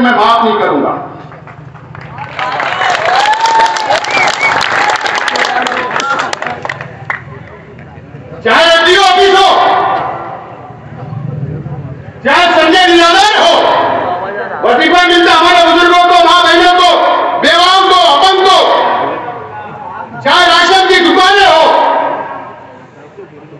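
A middle-aged man gives an impassioned speech into a microphone, booming through loudspeakers outdoors.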